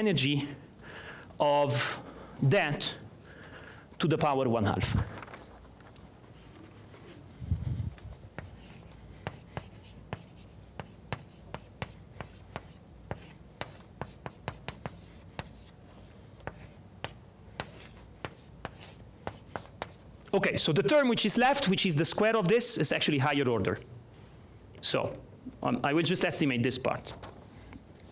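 A man lectures aloud.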